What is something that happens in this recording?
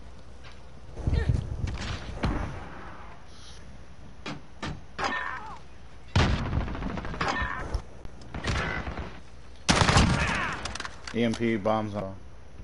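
Gunshots ring out with loud bangs and echoes.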